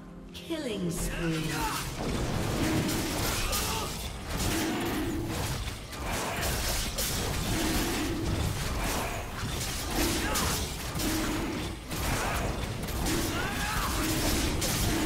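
Magic spells whoosh and crackle in a fast game fight.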